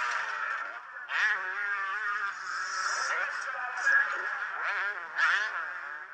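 A motorcycle engine revs loudly, its pitch rising and falling.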